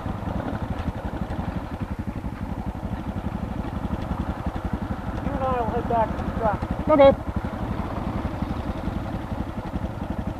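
A motorcycle engine idles with a steady, low thumping close by.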